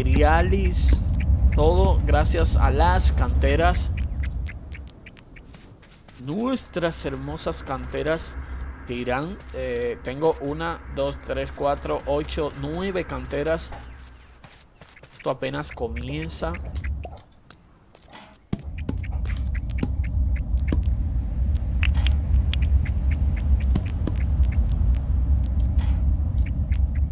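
Footsteps patter on a paved path.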